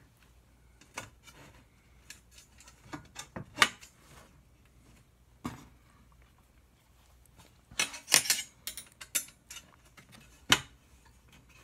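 Metal frame pieces click and tap against each other.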